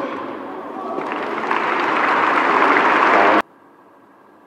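Spectators clap in applause.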